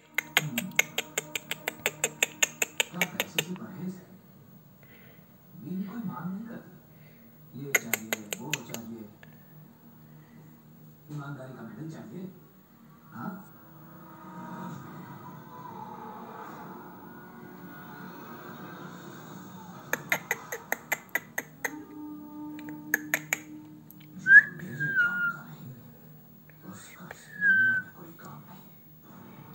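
A budgie chatters and chirps up close.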